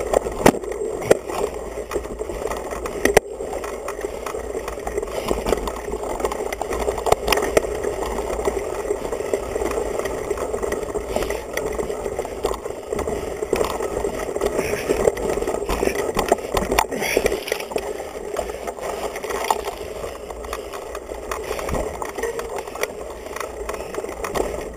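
A mountain bike's tyres crunch on a dirt trail.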